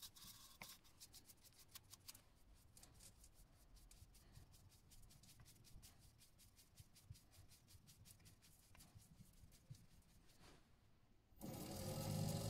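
A brush scratches softly against spinning wood.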